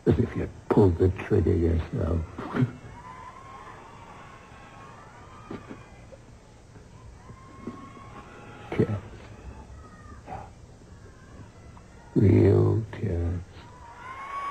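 A man speaks with emotion, close by.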